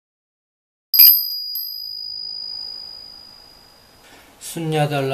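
A small brass bell rings once and its tone slowly fades.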